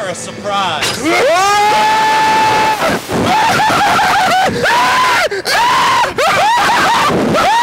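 Two young men scream loudly and at length.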